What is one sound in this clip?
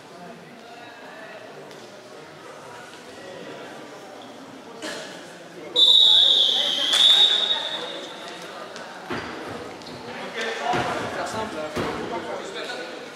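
Young men talk and shout in a large echoing hall.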